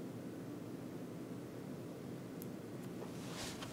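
A paintbrush dabs softly on canvas.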